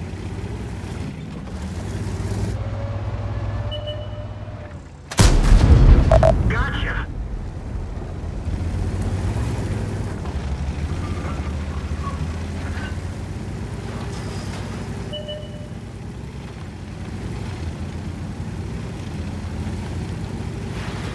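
A heavy tank engine rumbles steadily.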